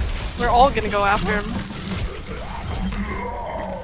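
A video game energy weapon fires with a buzzing crackle.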